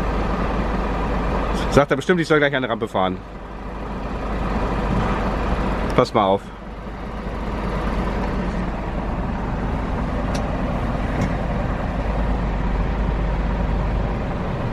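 A truck engine idles nearby with a steady low rumble.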